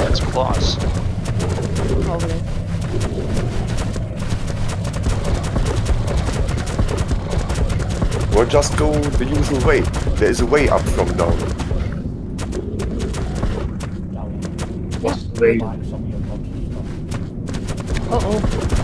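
Heavy footsteps of a large creature thud steadily.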